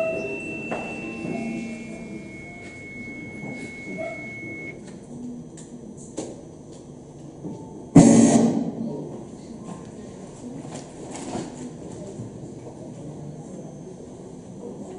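A man preaches with animation through a microphone in an echoing hall.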